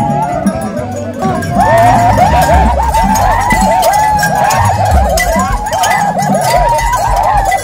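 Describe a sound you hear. A lively crowd chatters and shouts close by.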